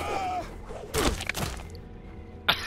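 A body thuds heavily onto the ground.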